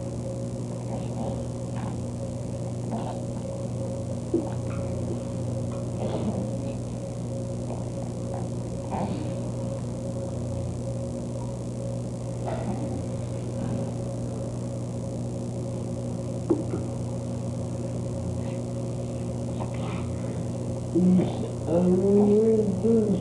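A woman speaks softly to a baby close by.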